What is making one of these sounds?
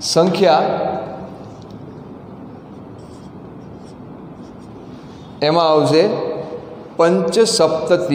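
A man speaks clearly and calmly through a clip-on microphone.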